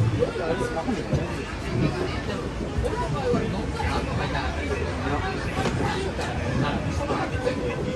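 Young people talk casually nearby.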